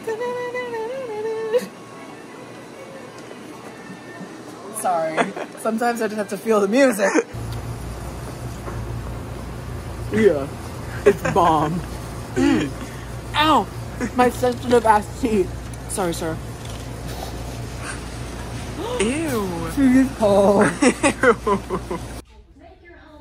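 A young man laughs and exclaims close by.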